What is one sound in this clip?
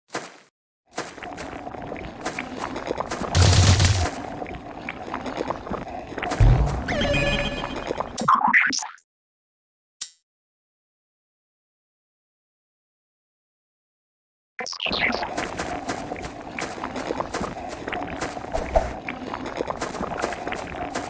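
Upbeat electronic game music plays.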